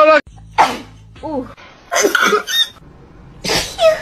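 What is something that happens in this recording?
A young woman cries out with animation close to a microphone.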